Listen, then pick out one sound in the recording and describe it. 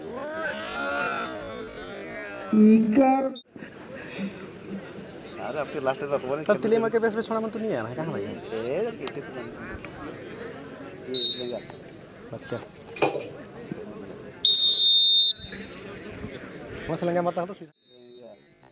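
A crowd of young men shouts and chatters nearby.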